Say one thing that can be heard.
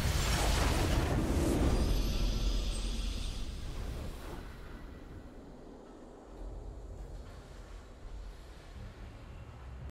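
A triumphant fanfare swells as the match is won.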